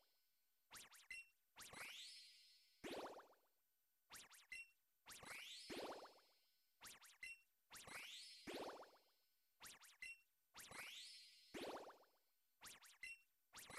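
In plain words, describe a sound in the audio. Game menu sounds chime and blip in a repeating pattern.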